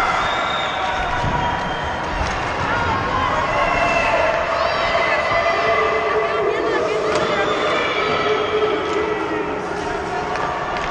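Ice skates scrape and carve across ice in a large echoing arena.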